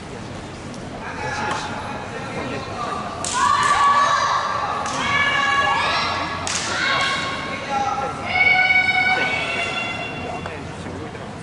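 Young women shout sharply in a large echoing hall.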